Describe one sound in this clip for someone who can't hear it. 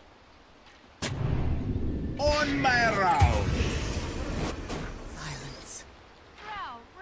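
Game spell effects crash and whoosh loudly.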